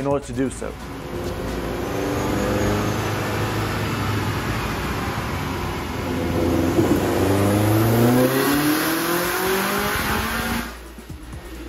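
A car engine revs hard, its pitch climbing, then cuts off.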